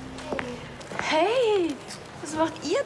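A young woman calls out excitedly nearby.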